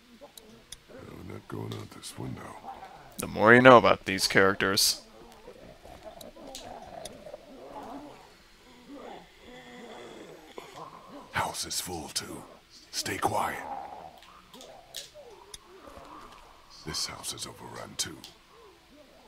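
A man speaks quietly and tensely in a low voice.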